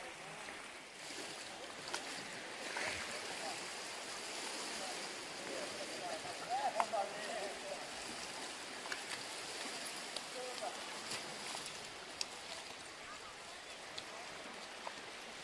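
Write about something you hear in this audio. Water laps gently against the side of a small boat.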